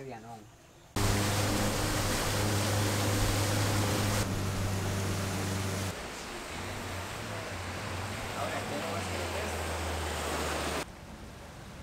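A boat motor drones steadily on the water.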